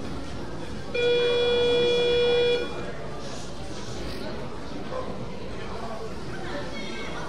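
Men and women chatter faintly in a large echoing hall.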